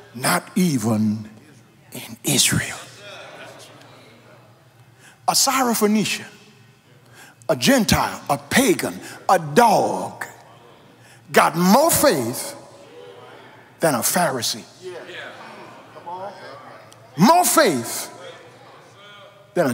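A man preaches with animation into a microphone, in short emphatic bursts, in a reverberant hall.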